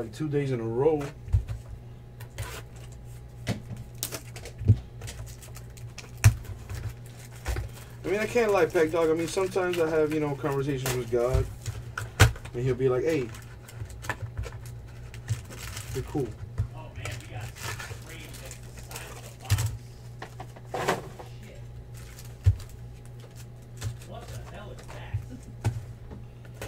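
Foil card packs crinkle and rustle as hands tear them open.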